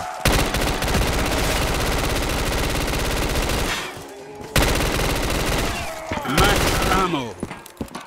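A rapid-fire gun shoots in fast bursts.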